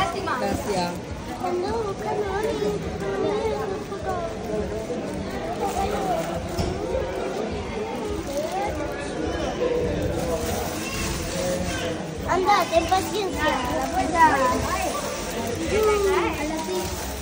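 Young girls chatter and talk over one another close by.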